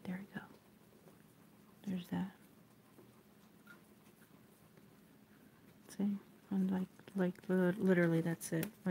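A satin ribbon rustles softly as hands fold it.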